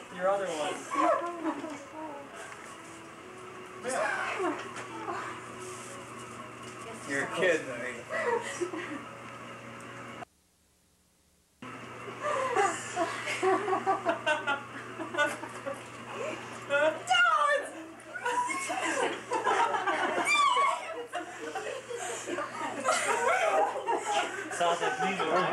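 Several adults talk and laugh together.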